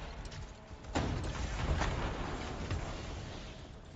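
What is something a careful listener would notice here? An explosion booms and crackles with showers of sparks.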